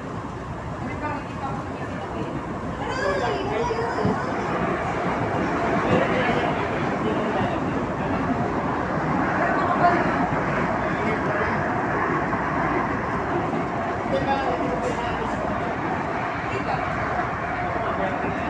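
A light rail train rumbles and rattles along, heard from inside the moving car.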